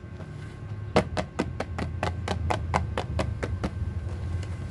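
Fingers tap rapidly on a cardboard box.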